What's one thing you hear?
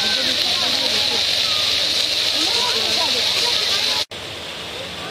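Water jets of a fountain splash steadily onto stone.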